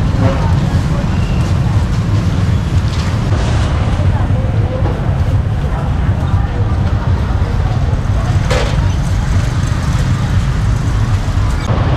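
Motorbike engines hum as they ride past on a street.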